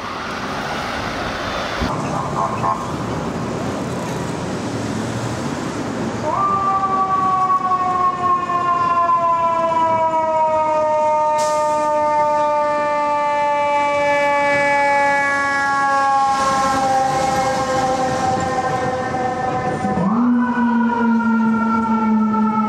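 Traffic rumbles along a city street.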